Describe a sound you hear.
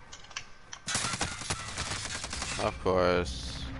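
Gunshots crack in rapid bursts.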